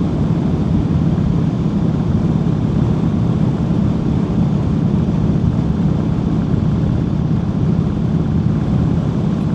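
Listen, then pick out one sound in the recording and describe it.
Wind buffets loudly against the rider.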